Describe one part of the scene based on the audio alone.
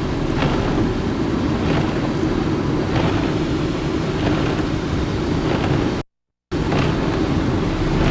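Windscreen wipers swish across wet glass at a regular pace.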